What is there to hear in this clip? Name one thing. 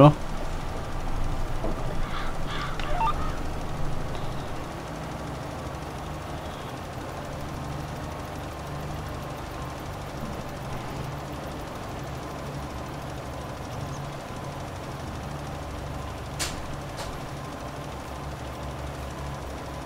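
A tractor engine hums steadily with a low drone.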